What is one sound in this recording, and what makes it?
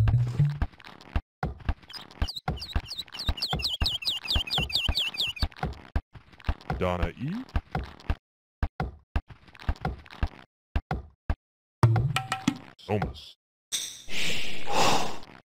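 Short game sound effects click and knock in quick succession.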